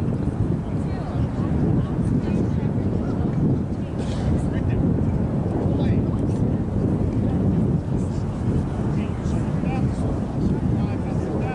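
Young women call out to each other across an open field in the distance.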